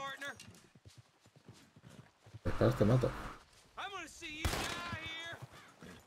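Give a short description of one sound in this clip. Horse hooves thud slowly on soft dirt.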